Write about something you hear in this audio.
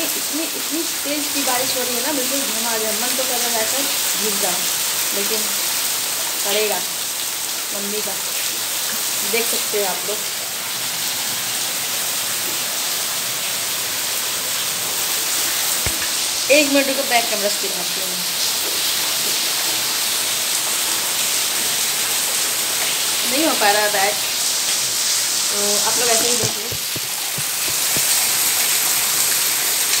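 Rain pours down steadily outdoors.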